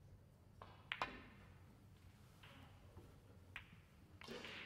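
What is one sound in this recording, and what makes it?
Snooker balls knock together with a click.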